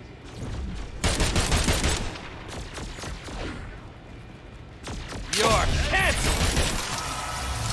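Rapid gunfire bursts out in loud volleys.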